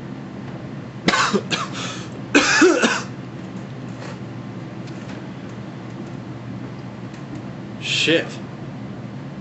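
A young man speaks briefly and casually, close by.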